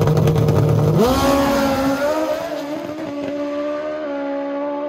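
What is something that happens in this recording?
A motorcycle engine roars and climbs in pitch as it races away.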